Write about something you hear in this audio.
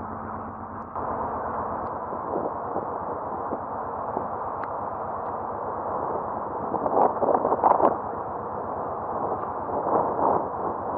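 Water churns and rushes along a ship's hull.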